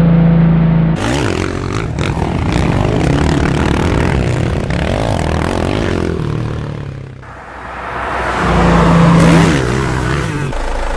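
Motorbike engines rev loudly.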